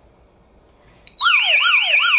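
An alarm panel beeps once.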